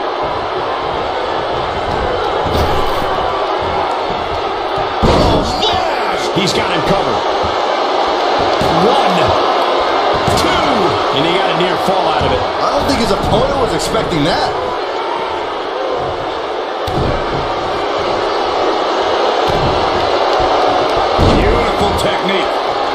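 A large crowd cheers and roars steadily throughout.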